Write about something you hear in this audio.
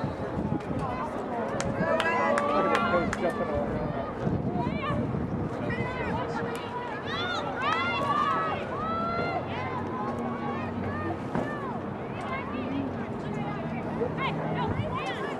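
Young women call out to each other across an open field, far off.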